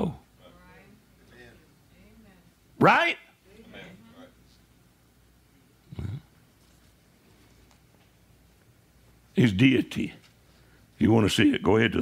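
An elderly man speaks with animation, with pauses between phrases.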